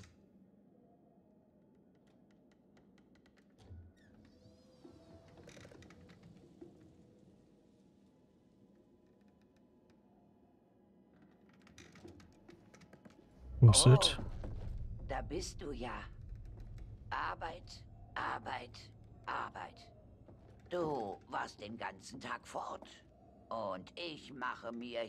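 A wooden rocking chair creaks as it rocks back and forth.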